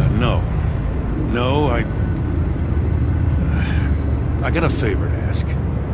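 A middle-aged man speaks in a low, gruff voice.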